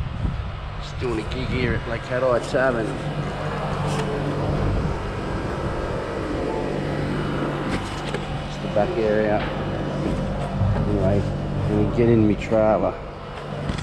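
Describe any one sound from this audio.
A middle-aged man speaks close to the microphone in a casual, animated tone.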